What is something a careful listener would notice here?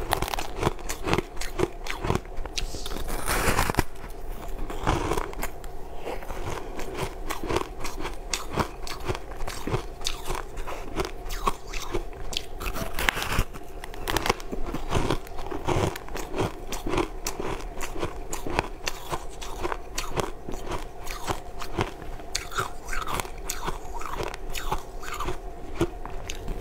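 A woman chews and munches food noisily up close.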